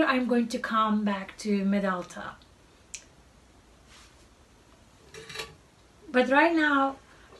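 A woman talks calmly and close to a microphone, with pauses.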